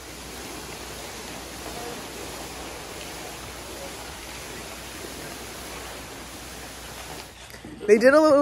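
A large plastic sheet rustles as it is dragged across a floor.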